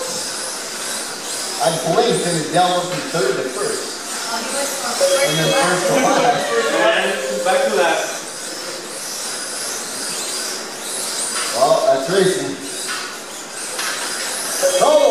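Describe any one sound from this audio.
Small electric race cars whine and buzz at high speed, rising and falling as they race past.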